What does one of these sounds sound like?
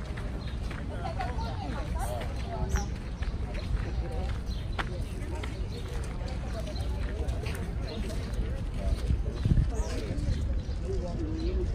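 A man and a woman talk calmly nearby.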